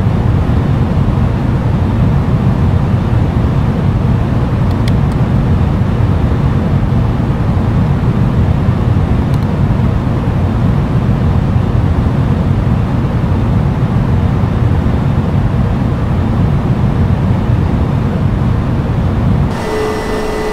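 An airliner's engines rumble in flight, heard from inside the cockpit.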